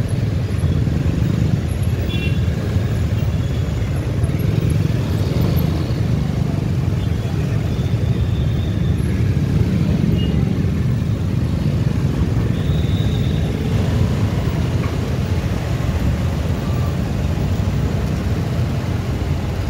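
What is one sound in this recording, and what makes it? Motorcycle engines rumble steadily in slow street traffic.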